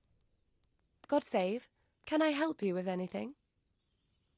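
A young woman speaks calmly and politely.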